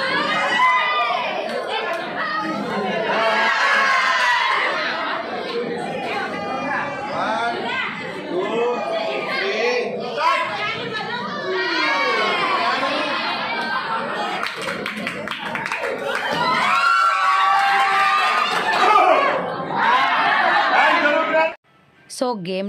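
A group of women and men sing together loudly and cheerfully close by.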